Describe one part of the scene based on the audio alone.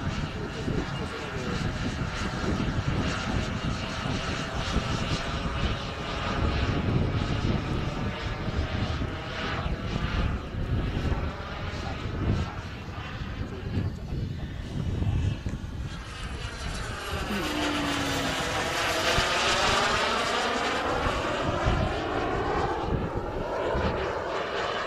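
A jet engine roars overhead, its pitch sweeping down and up as it passes.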